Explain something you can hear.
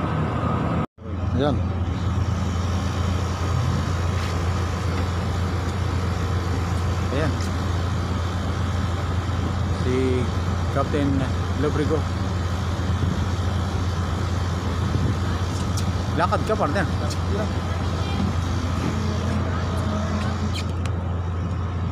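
A ship's engine hums steadily and low.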